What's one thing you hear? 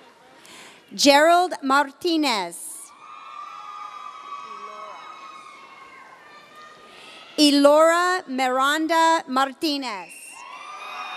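A man reads out names through a loudspeaker in a large echoing hall.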